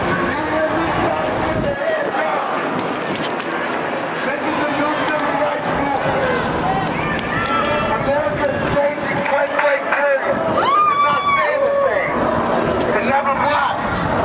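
A large crowd chants loudly together outdoors.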